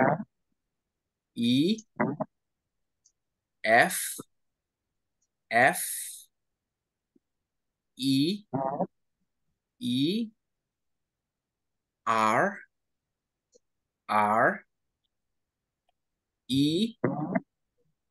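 A woman speaks with animation in short bursts over an online call.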